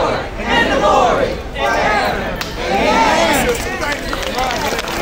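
A man speaks loudly and with passion to a crowd outdoors.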